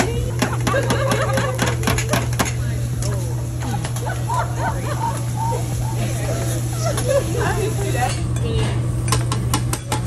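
Metal spatulas clatter and scrape rapidly on a hot griddle.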